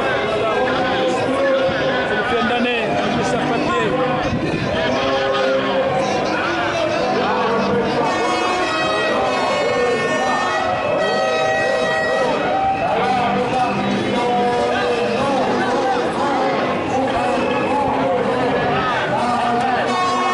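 A large crowd of marchers chants and talks outdoors.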